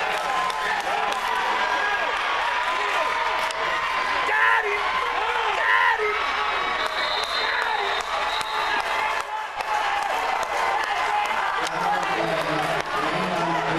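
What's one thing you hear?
Players on the sideline shout and yell excitedly.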